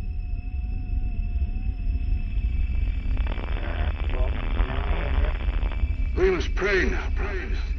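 A spaceship's engine rumbles low and steadily.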